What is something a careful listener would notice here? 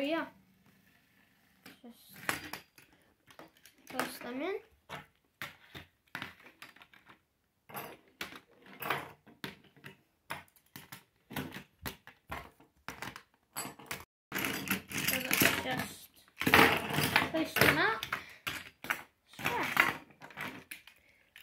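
Plastic spinning tops clatter and click on a plastic tray.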